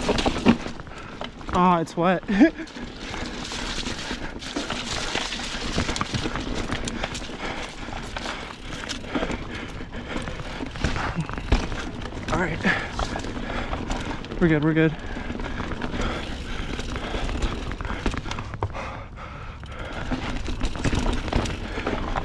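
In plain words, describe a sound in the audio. A mountain bike rattles and clunks over bumps.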